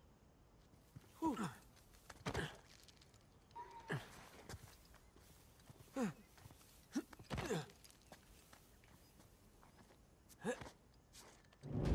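Hands grab and thump against stone ledges.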